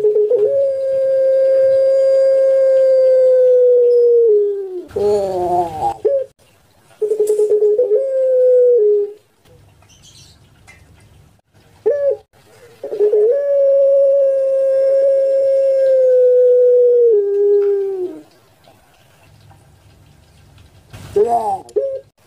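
A dove coos close by in long, low, steady calls that repeat.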